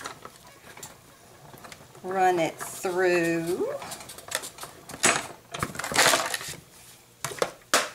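A hand-cranked die-cutting machine rolls and creaks as its handle turns.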